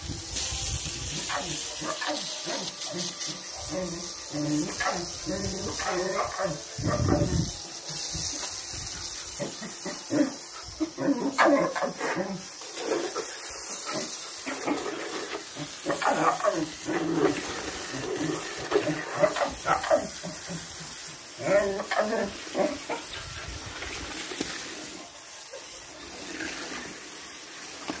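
Dogs bark nearby.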